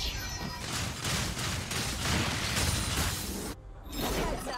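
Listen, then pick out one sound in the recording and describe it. Magical blasts and clashing weapons crackle in a fierce fight.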